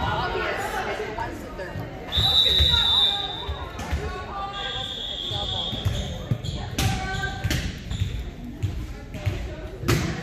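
Teenage girls call out and chatter in a large echoing gym.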